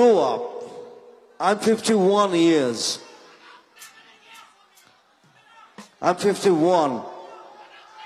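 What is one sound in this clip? A young man sings loudly into a microphone, heard through loudspeakers in short bursts.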